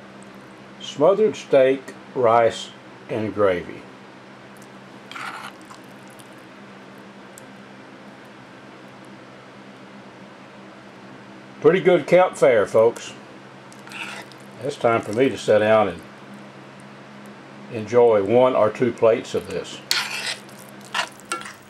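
A fork scrapes and stirs through rice in an iron pan.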